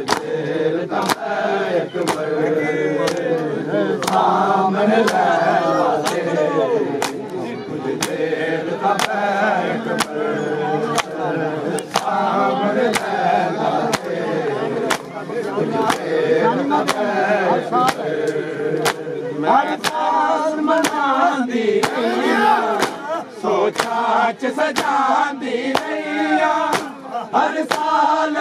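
Men beat their chests in a steady rhythm of sharp slaps.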